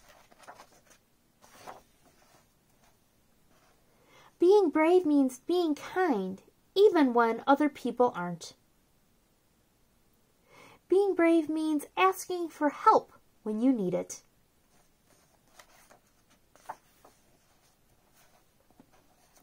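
A book's paper pages turn with a soft rustle.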